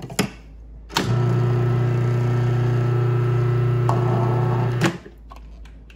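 A food processor whirs loudly and steadily.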